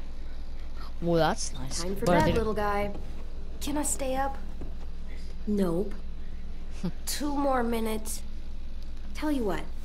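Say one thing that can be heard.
A young woman speaks softly and warmly, close by.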